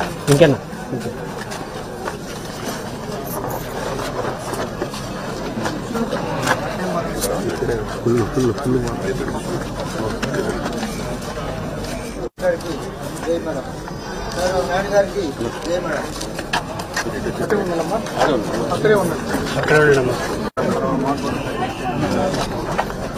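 A crowd of men and women chatter outdoors all around.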